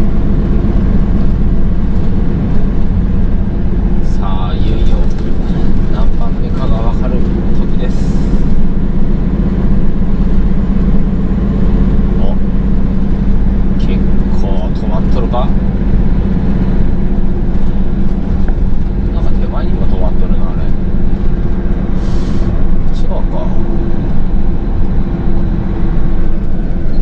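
A heavy truck engine drones steadily from inside the cab.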